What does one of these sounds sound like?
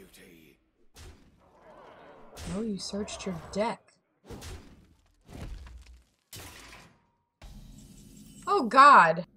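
Game sound effects whoosh and chime as cards are played.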